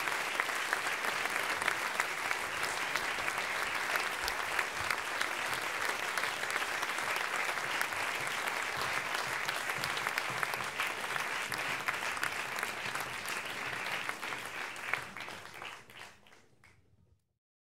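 A large audience applauds with steady clapping that fades away at the end.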